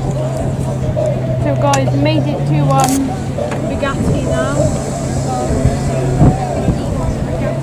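Men talk nearby in an outdoor crowd.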